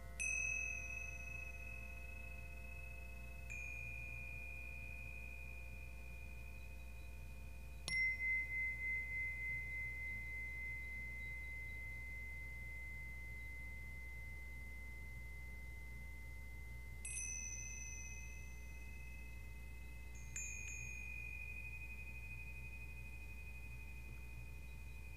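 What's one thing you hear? Metal chimes are struck and ring out with long, slowly fading tones.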